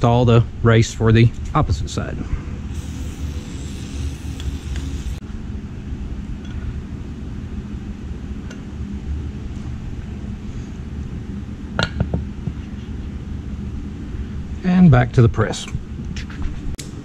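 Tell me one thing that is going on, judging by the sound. A man talks calmly and close to a microphone.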